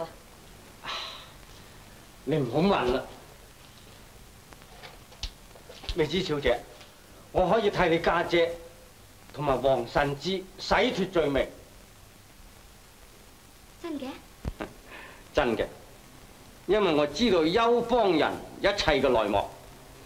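A man speaks in a low, rough voice, close by.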